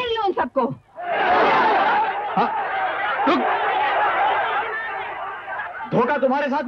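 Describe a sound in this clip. A crowd clamours loudly.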